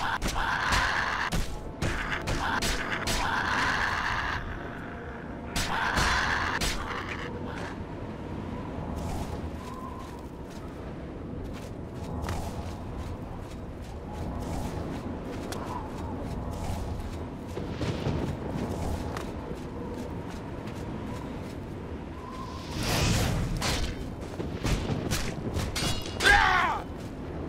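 Fists strike a creature with dull, heavy thuds.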